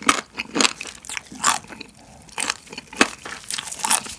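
A spoon scrapes and squishes through sticky rice.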